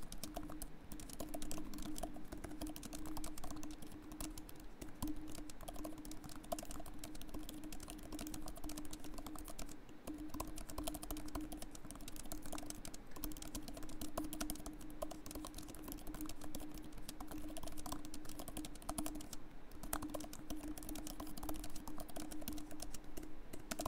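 Laptop keys click rapidly and steadily, close by.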